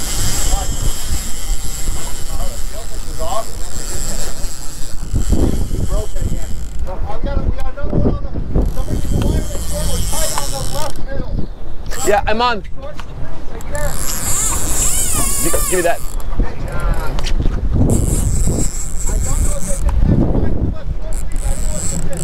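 Waves slosh and splash against a boat's hull.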